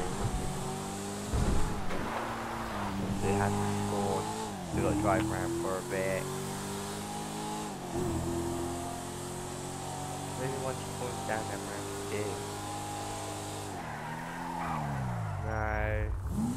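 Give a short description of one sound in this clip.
A car engine hums steadily, rising and falling in pitch as it revs.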